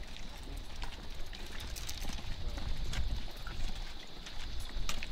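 Rifles and gear clink and rattle as soldiers march.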